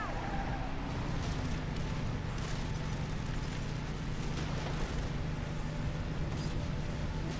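A motorcycle engine drones steadily as it speeds along.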